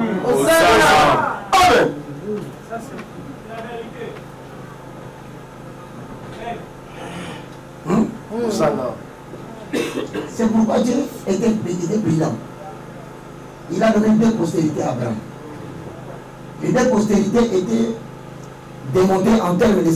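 A man speaks with animation through a headset microphone, heard over loudspeakers in a room with some echo.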